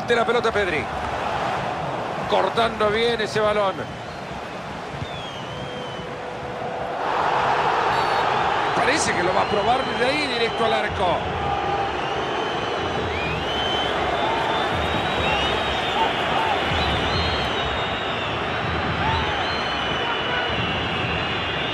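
A large stadium crowd roars and chants.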